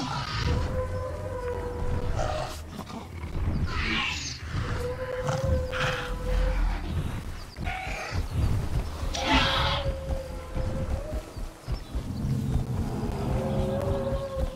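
A small dinosaur chirps and squawks.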